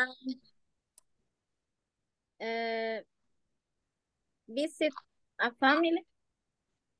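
A woman speaks through an online call in short bursts.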